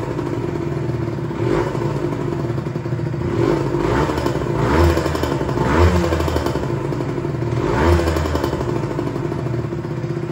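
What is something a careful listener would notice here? A two-stroke sport bike idles roughly.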